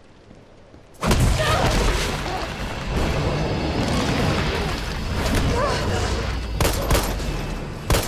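A monster roars loudly and growls.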